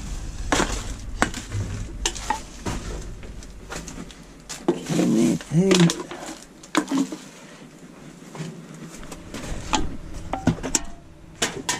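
Glass bottles and cans clink and rattle among the rubbish.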